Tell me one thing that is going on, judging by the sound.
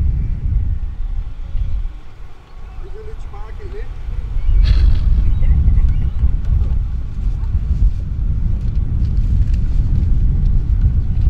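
Wind blows across an open field, rumbling steadily.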